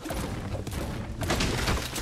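A pickaxe thuds against a tree trunk.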